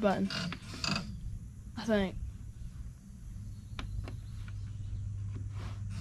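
A button clicks as a finger presses it.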